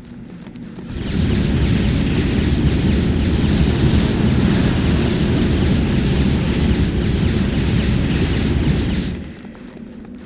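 A powerful energy beam roars steadily.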